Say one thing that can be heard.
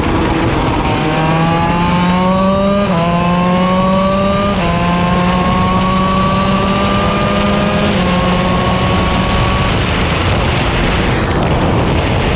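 A kart engine whines loudly, its pitch climbing and dropping as it speeds up and slows for corners.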